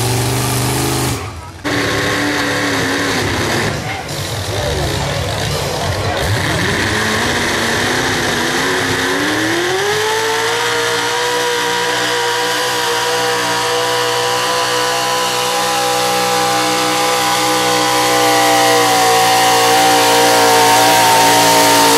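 A loud truck engine roars, climbing in pitch and then holding a high, steady howl.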